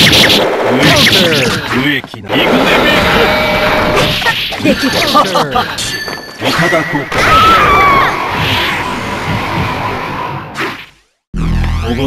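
Fighting game blows land with sharp hits and whooshing effects.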